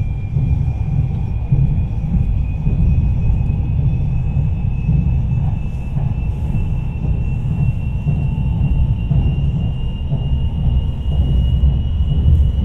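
A motor whines steadily inside a train, slowly rising in pitch.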